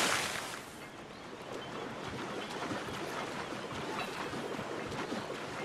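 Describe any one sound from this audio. Water splashes and churns as a swimmer strokes through it.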